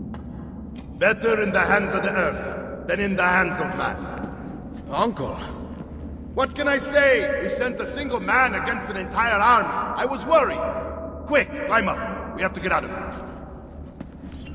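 A man speaks calmly, then with urgency.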